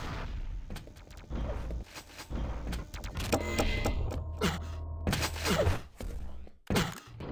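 Weapons fire in quick bursts.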